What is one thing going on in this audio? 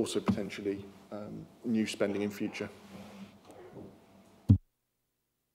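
A man speaks through a microphone in a calm, measured voice.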